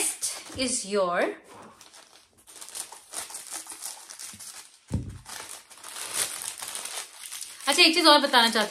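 A plastic packet crinkles and rustles.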